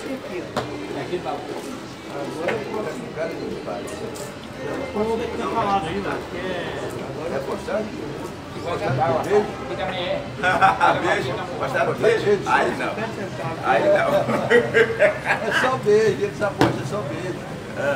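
Checker pieces clack on a plastic board.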